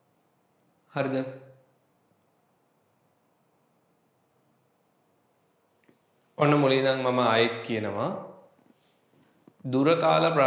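A young man speaks calmly and clearly into a close microphone, in short bursts between long silences.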